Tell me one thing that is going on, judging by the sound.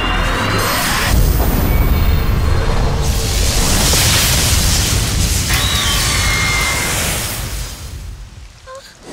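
Lightning crashes with a loud, roaring rumble.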